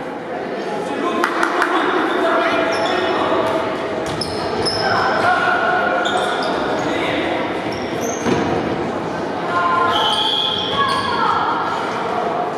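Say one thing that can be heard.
A ball thuds against the floor and is kicked.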